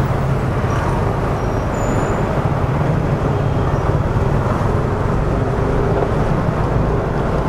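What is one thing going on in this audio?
A motorcycle engine idles and rumbles steadily close by.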